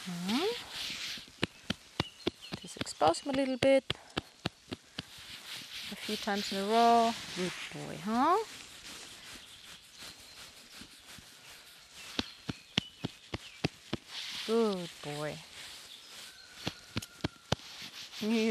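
A horse's hooves knock on a hollow box.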